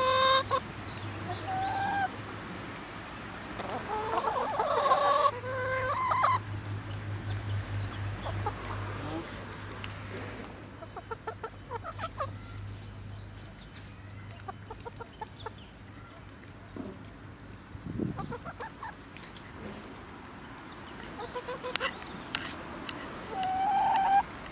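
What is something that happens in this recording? Hens peck at grain on dry ground with soft rapid taps.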